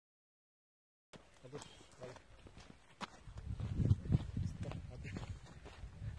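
Footsteps scrape on bare rock.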